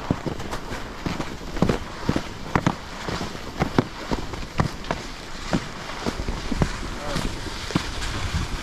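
Skis scrape and hiss over packed snow.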